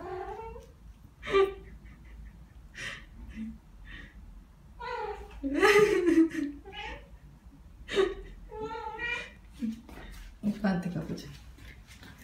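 A cat meows repeatedly nearby.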